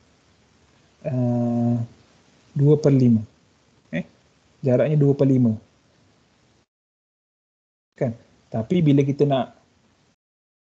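A young man speaks calmly over an online call, in short phrases with pauses.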